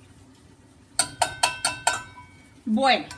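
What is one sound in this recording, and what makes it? A metal pot clinks against a glass jar.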